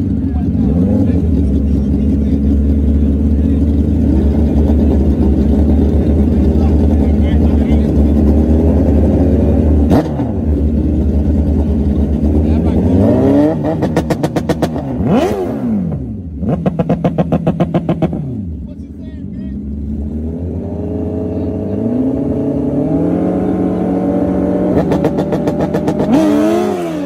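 Two motorcycle engines idle loudly close by and rev up and down.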